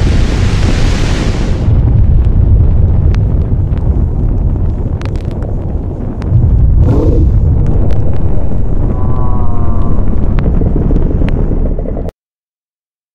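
A deep rumbling storm drones.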